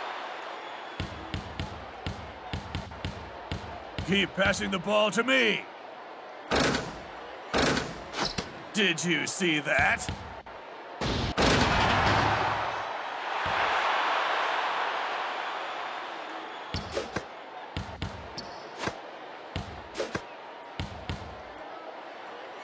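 A basketball bounces repeatedly on a wooden court.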